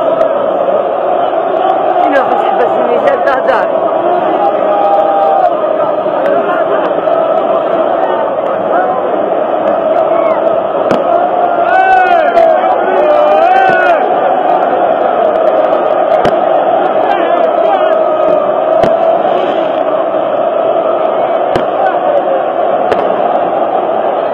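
A huge stadium crowd chants and sings loudly throughout.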